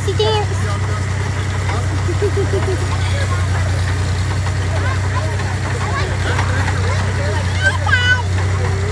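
A young child squeals in a high voice.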